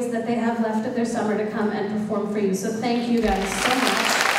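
A group of young women sings together in a large hall.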